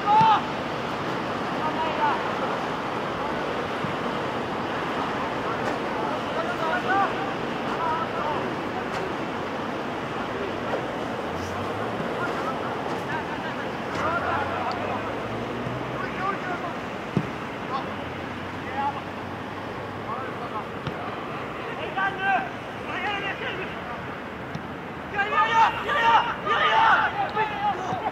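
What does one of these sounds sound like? Young players shout to each other across an open field, some way off.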